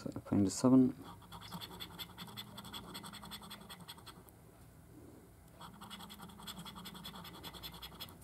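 A coin scratches rapidly across a card.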